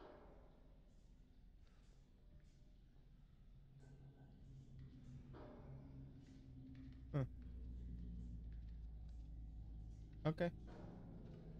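A man speaks quietly into a close microphone.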